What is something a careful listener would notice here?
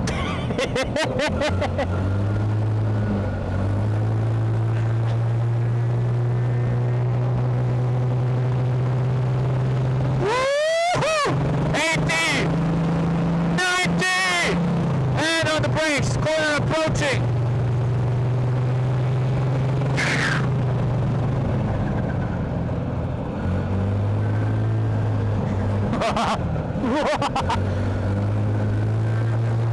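A small car engine roars steadily at speed.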